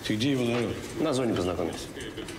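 Another man answers in a low voice, close by.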